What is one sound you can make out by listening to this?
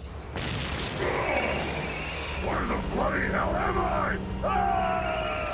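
A creature roars and screams loudly.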